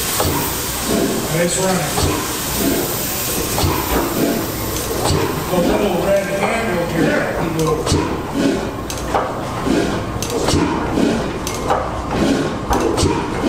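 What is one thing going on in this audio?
A large stationary engine runs with slow, steady, rhythmic chuffing beats.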